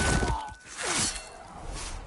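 A magic blast whooshes and crackles.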